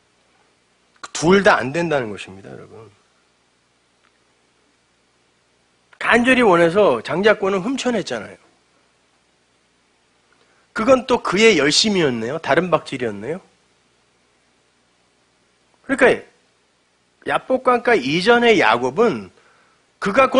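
A middle-aged man speaks with emphasis into a microphone, in short bursts with pauses between them.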